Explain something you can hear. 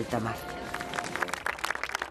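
A woman talks outdoors.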